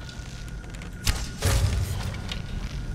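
A bowstring twangs as an arrow is loosed, with a sharp thud.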